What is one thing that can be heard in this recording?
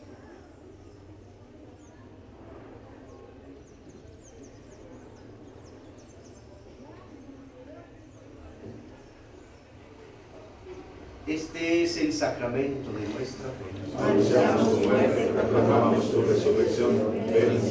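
A man speaks quietly and slowly, close by.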